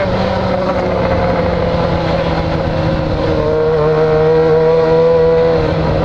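A motorcycle engine hums steadily close by, rising slightly in pitch as it speeds up.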